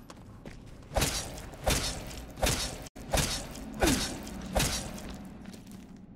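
Heavy blows thud onto a body.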